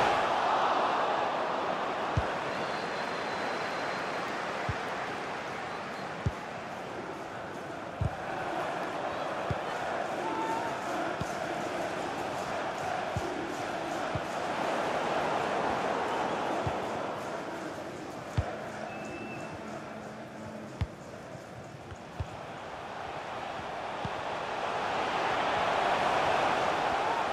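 A stadium crowd roars and murmurs steadily, swelling louder at the start and end.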